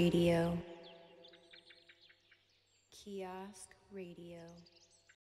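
Electronic music plays loudly, with bright synth notes that sweep down, stop, and then come back.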